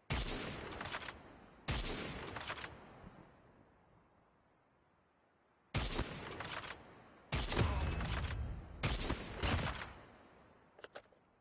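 Sniper rifle shots boom loudly and echo away.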